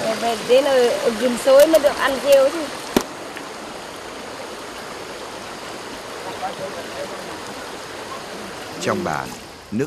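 A shallow stream babbles over rocks.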